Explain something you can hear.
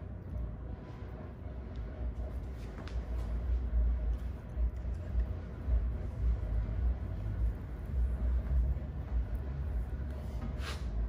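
Fingers rub and ruffle damp hair close by.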